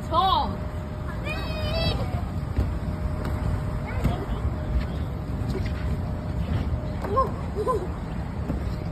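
A young child squeals and shouts with excitement close by.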